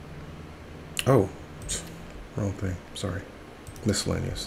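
A man speaks casually into a nearby microphone.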